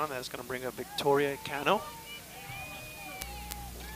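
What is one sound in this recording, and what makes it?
A softball smacks into a catcher's glove.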